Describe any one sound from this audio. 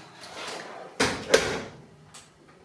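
An oven door clanks open.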